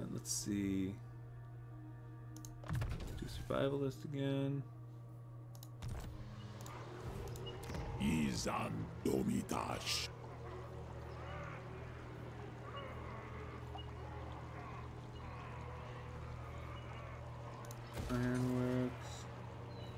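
Short bright interface chimes ring out now and then.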